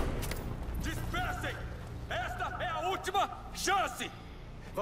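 A man shouts a warning through a loudspeaker.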